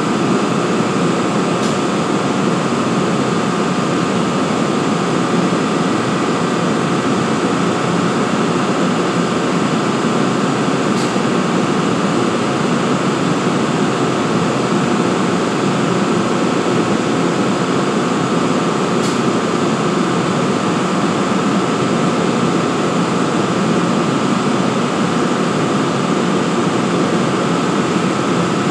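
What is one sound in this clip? A train's locomotive engine idles with a loud, steady rumble and hum.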